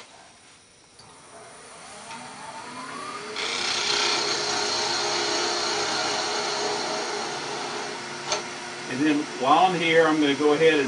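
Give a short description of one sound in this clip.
A lathe motor whirs up to speed and runs with a steady hum.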